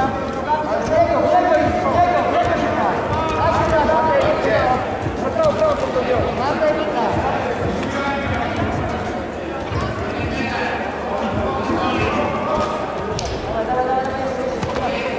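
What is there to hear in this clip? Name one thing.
Wrestlers' shoes thud and scuff on a mat.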